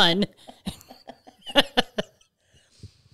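A middle-aged woman laughs loudly close to a microphone.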